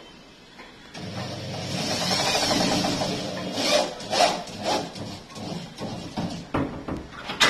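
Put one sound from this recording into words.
An electric drill grinds into a hard wall.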